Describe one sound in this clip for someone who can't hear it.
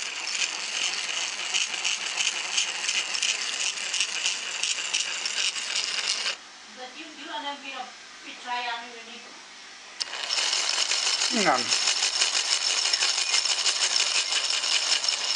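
An electric motor whirs and gears grind rapidly.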